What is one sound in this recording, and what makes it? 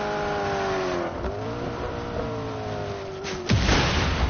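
Tyres skid and crunch over rough ground.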